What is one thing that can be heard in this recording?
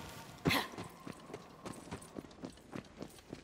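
Heavy footsteps thud steadily on stone.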